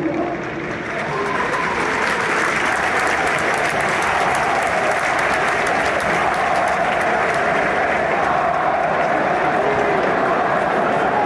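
A huge crowd roars loudly and rises to a steady din.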